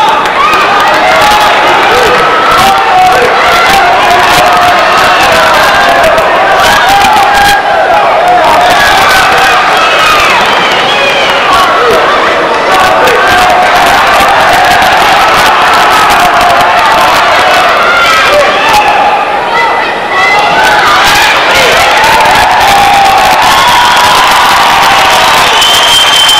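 A large crowd cheers and chatters loudly in a big echoing hall.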